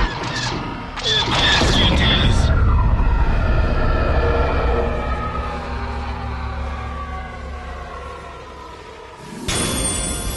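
A spacecraft explodes with a loud roaring blast that slowly fades away.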